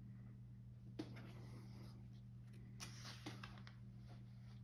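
A hand rustles and slides across a stiff paper page, up close.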